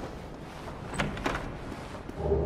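A wooden chest creaks and thuds open.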